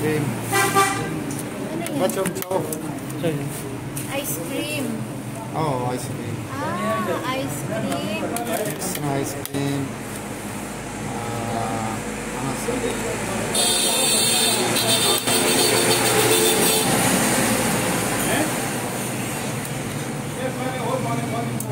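A metal scoop scrapes inside a metal pot.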